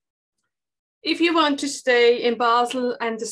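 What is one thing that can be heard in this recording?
A woman speaks clearly into a microphone, as if presenting.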